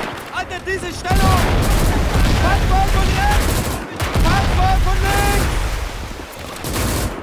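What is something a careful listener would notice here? Shells explode with heavy booms.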